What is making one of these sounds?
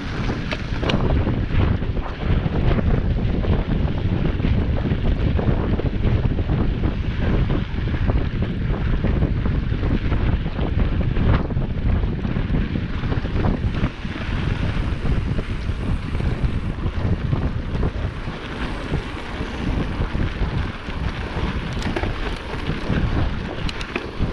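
Wind rumbles loudly against a microphone.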